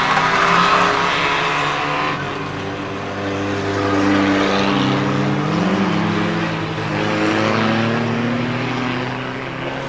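Several car engines roar and rev loudly as cars race past.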